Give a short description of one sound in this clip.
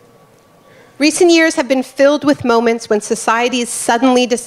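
A woman speaks calmly into a microphone, close by.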